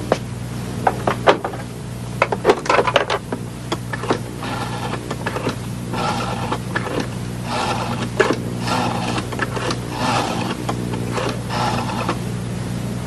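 Buttons click as a payphone is dialled.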